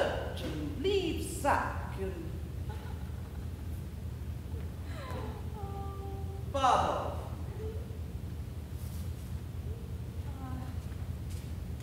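A woman speaks with animation in a large echoing hall.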